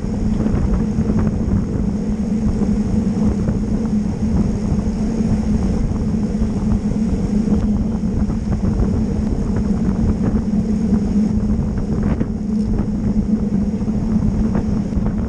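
Wind rushes and buffets loudly across a microphone.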